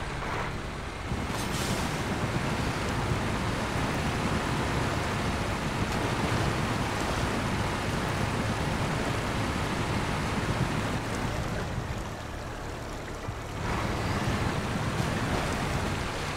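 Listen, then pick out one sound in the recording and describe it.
Water splashes and sloshes as a heavy truck drives through it.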